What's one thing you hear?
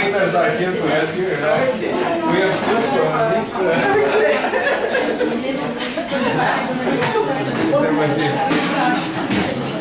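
A group of men and women sing together nearby.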